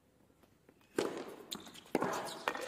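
A tennis ball is struck hard by a racket, with a sharp pop.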